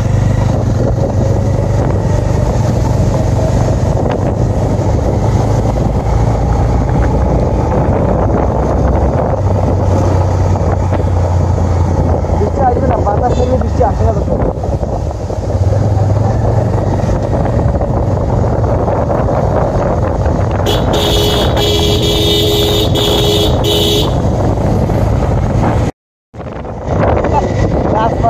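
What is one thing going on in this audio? Wind rushes and buffets past a microphone while riding.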